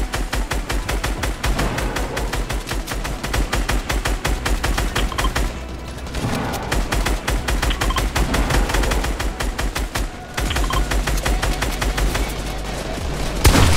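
Video game building pieces snap into place in quick succession.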